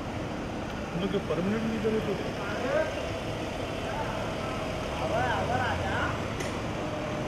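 Men talk briefly nearby.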